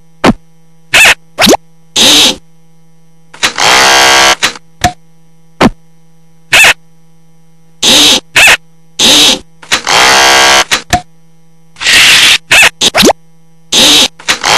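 Wooden planks slide and knock into place in short bursts.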